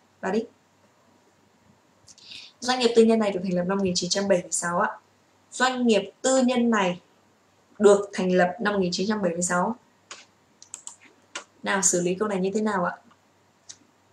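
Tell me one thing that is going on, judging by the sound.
A young woman speaks calmly and clearly into a nearby microphone, with pauses.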